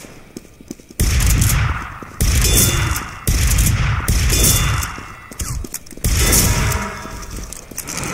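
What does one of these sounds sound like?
A shotgun fires with loud, booming blasts.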